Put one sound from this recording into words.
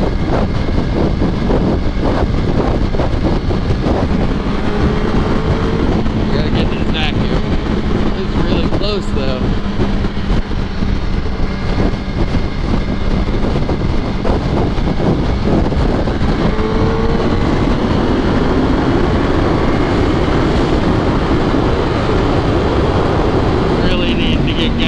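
Wind roars loudly against a motorcycle rider's helmet.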